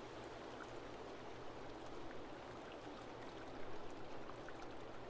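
Water laps and ripples steadily.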